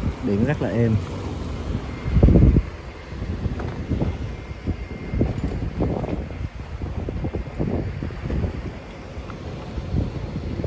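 Water splashes and slaps against a boat's hull.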